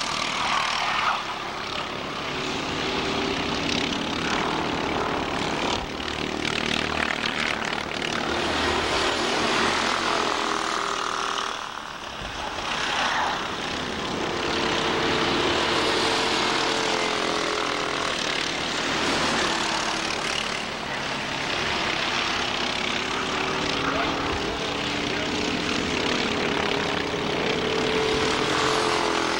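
Go-kart engines buzz and whine as karts race past outdoors.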